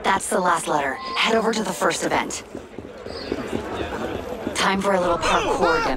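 Footsteps hurry over cobblestones.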